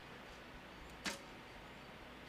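A bowstring twangs sharply as an arrow is released.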